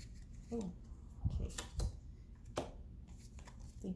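A card is laid down on a table with a soft tap.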